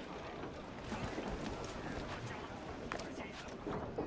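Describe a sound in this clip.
Footsteps thud on wooden planks.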